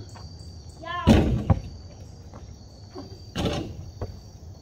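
A basketball clangs against a hoop.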